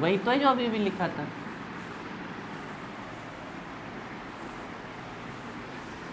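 A man rubs a chalkboard clean with a duster.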